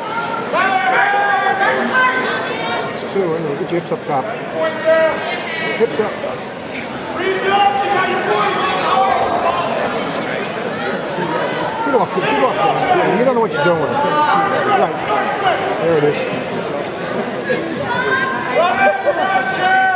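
A man close by shouts encouragement loudly.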